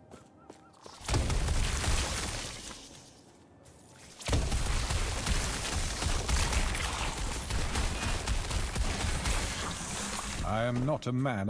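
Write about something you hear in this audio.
Fiery spells roar and blast in bursts.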